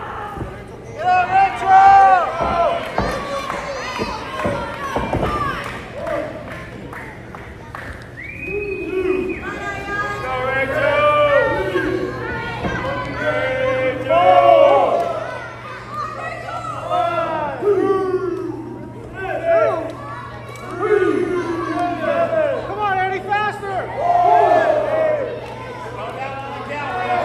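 A crowd shouts and cheers in a large hall.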